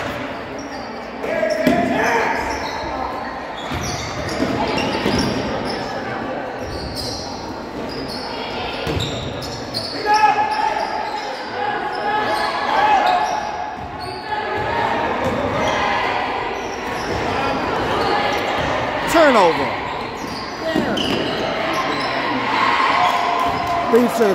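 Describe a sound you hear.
A crowd of spectators cheers and calls out in a large echoing gym.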